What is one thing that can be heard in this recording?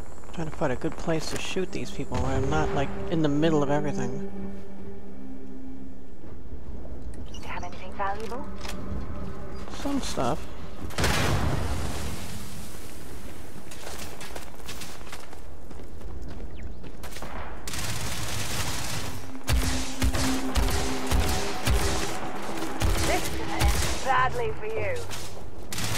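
Laser guns fire in rapid bursts of sharp shots.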